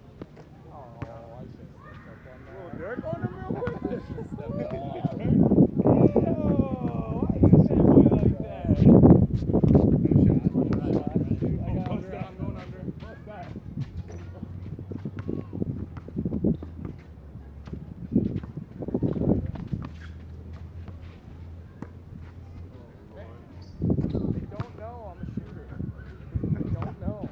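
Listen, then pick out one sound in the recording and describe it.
Young men talk and call out to each other outdoors.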